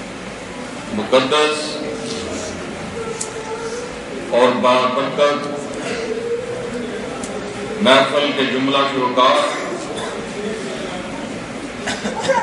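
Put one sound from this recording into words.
A man speaks with emphasis through a microphone and loudspeakers, in a hall with some echo.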